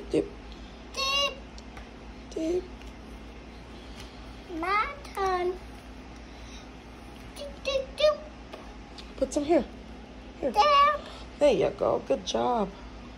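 A young child speaks in a high voice, close by.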